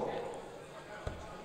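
A dart thuds into a board.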